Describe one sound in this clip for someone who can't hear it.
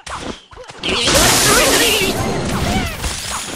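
Cartoon battle sound effects crash and whoosh loudly.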